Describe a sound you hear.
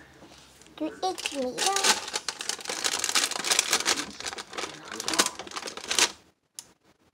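Plastic containers clatter and rustle as they are handled.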